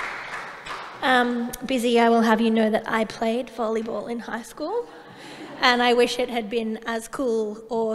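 A woman speaks clearly through a microphone in a large hall.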